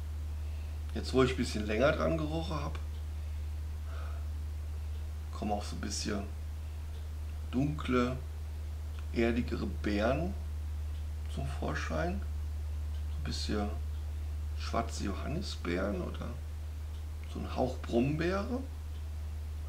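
A man speaks calmly up close in short phrases with pauses.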